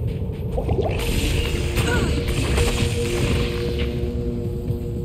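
A fiery spell bursts with a loud whoosh.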